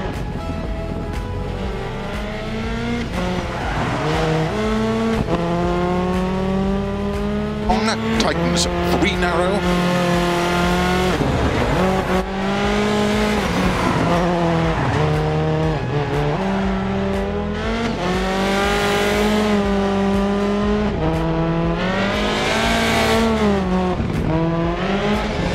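A rally car engine roars and revs through its gears.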